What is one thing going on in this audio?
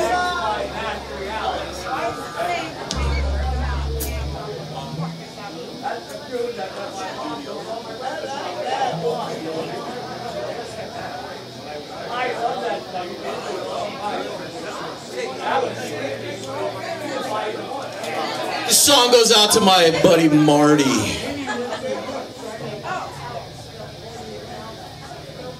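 A man speaks into a microphone, heard over loudspeakers in a room.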